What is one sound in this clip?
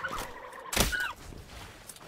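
Weapons fire and blasts crack during a fight.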